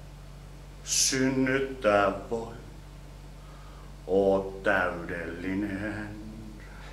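A man speaks dramatically and loudly nearby.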